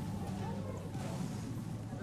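A pickaxe strikes wood with sharp knocks.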